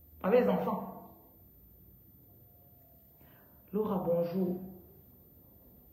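A woman speaks calmly close to a phone microphone, in short phrases with pauses.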